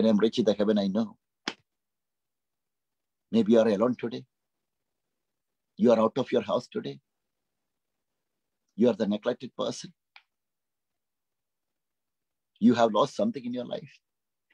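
A man speaks calmly in short phrases over an online call, with pauses between them.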